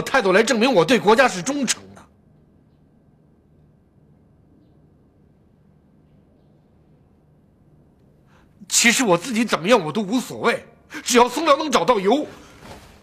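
A middle-aged man speaks earnestly and emphatically, close by.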